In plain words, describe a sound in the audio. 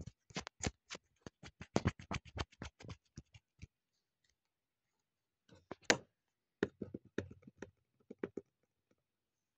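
Plastic bottles and tubes clatter and knock together in a box.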